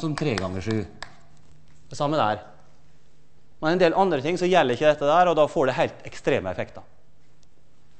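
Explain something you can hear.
A man lectures in a large, echoing hall, speaking calmly and clearly.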